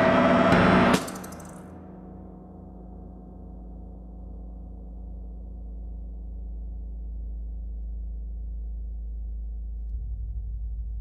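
A low synthesizer drone hums steadily.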